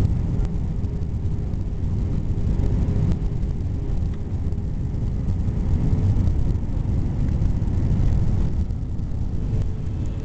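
Jet engines roar steadily in a low, constant rumble.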